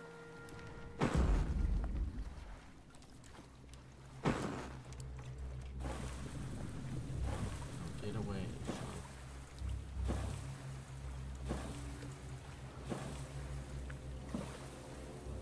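Water sloshes and laps against a raft.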